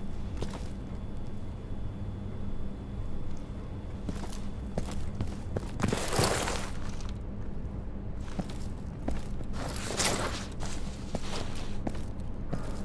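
Footsteps tap on a hard floor in an echoing space.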